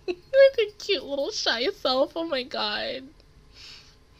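A young woman speaks cheerfully into a close microphone.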